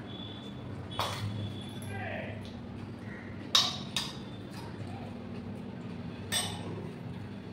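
A metal cup clinks against a metal tumbler.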